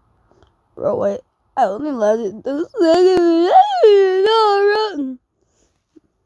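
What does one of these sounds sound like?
A child cries out in a drawn-out, wailing voice close to a microphone.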